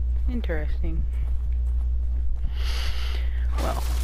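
Footsteps crunch through dry grass and debris.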